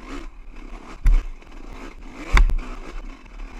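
Tyres bump and knock over rocks on a rough trail.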